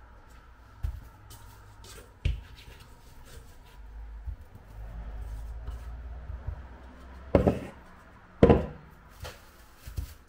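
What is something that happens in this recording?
Plastic wrap crinkles under hands.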